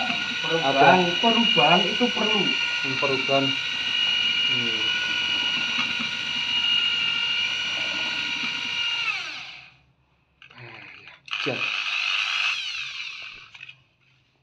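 A power drill whirs steadily.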